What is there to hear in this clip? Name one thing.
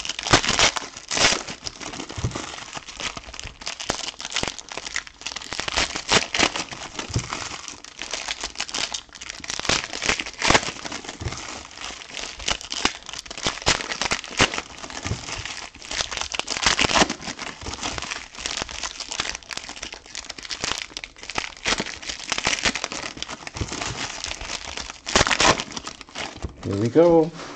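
Foil wrappers crinkle and rustle close by as hands tear open packs.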